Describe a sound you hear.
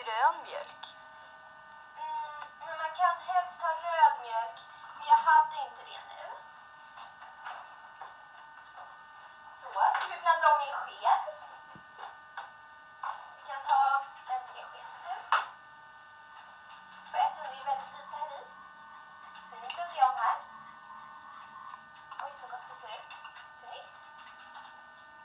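A woman talks casually, heard through a small tinny loudspeaker.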